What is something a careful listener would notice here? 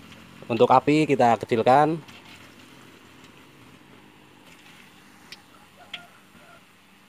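Hot oil sizzles and crackles softly in a pan.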